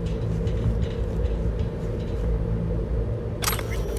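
Footsteps clank on a metal grate floor.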